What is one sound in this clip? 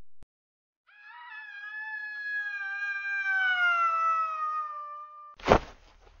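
A man sings a long, slowly falling note.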